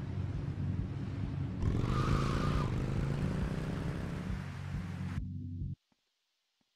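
A motorcycle engine idles and rumbles loudly.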